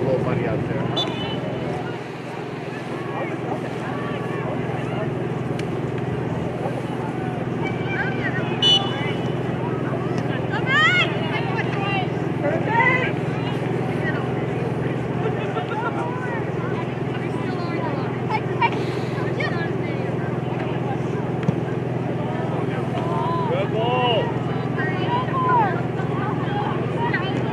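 A crowd of spectators murmurs and calls out outdoors.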